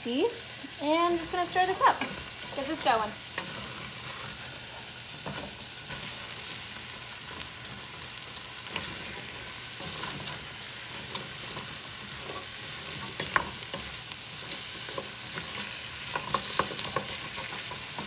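A wooden spoon stirs chopped vegetables in a metal pot, scraping and clattering softly.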